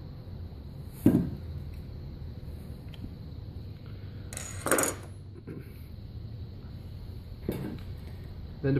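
A metal tube knocks against a wooden table.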